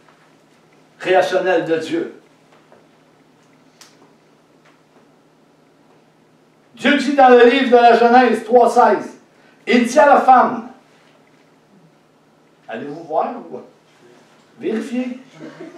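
An older man speaks expressively in bursts with pauses, close by.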